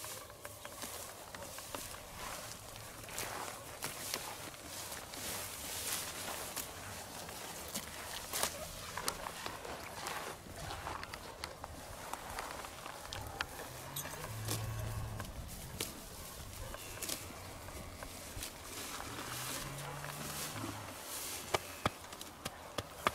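A cow tears and munches grass up close.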